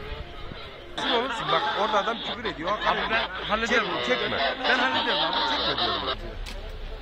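A crowd of men shouts and argues close by.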